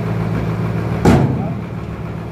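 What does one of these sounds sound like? A heavy wooden slab thuds down onto the stack.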